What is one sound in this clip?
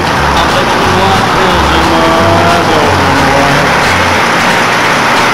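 A truck engine idles with a low rumble.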